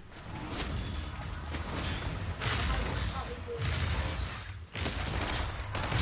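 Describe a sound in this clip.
Magical blasts whoosh and boom in quick bursts.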